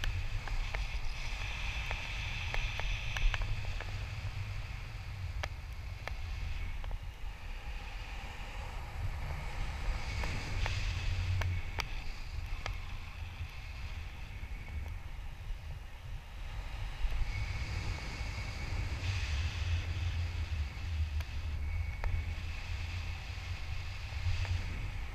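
Wind rushes steadily past a microphone outdoors.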